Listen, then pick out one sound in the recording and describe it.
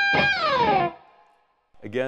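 An electric guitar plays an amplified chord that rings out and slides down in pitch.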